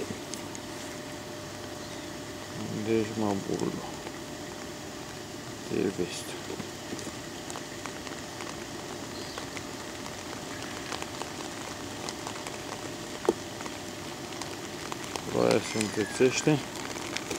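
Rain patters steadily on water.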